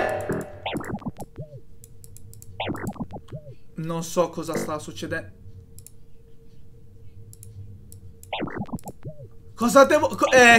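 Short electronic tones chime in quick runs.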